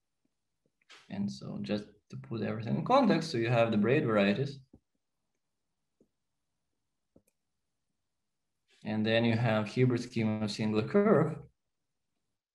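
A man speaks calmly into a close microphone, in two short bursts with pauses between them.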